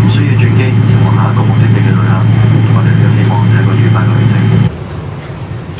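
An aircraft engine drones loudly and steadily.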